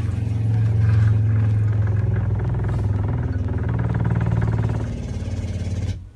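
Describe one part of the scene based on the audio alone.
Water trickles from a valve into a bucket.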